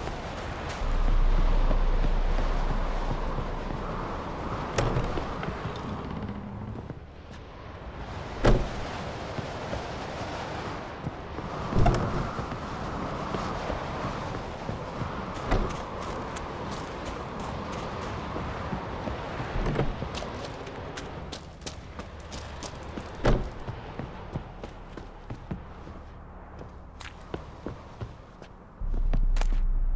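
Footsteps thud on wooden boards and crunch through snow.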